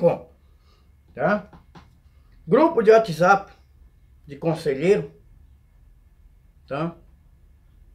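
A young man speaks with animation into a headset microphone, close by.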